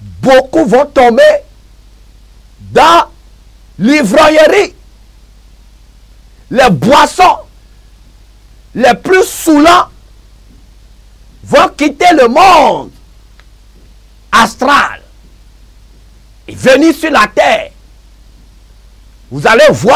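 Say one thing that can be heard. A man preaches loudly and emotionally into a microphone, shouting in short bursts with pauses between.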